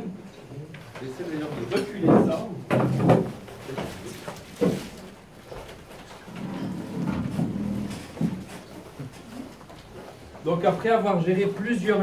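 Several people talk and murmur nearby.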